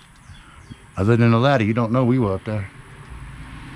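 An elderly man speaks up close.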